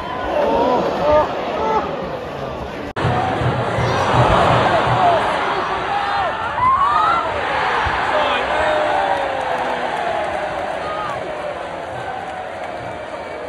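A large stadium crowd roars and chants loudly outdoors.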